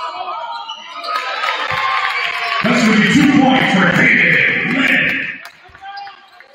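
A crowd cheers loudly in an echoing gym.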